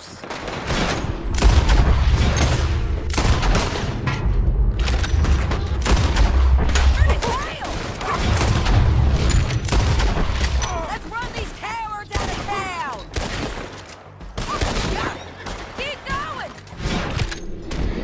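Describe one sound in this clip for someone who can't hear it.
Gunshots crack rapidly in a loud shootout.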